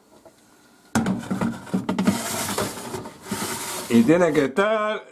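A metal baking tray scrapes as it slides onto an oven rack.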